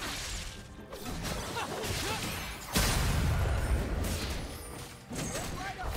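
Video game battle sound effects clash and burst.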